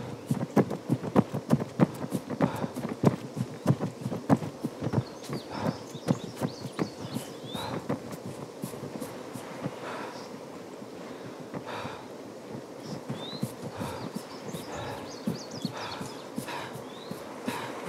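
Boots crunch on gravel at a quick running pace.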